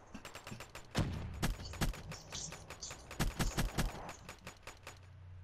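Gunfire rattles in quick bursts.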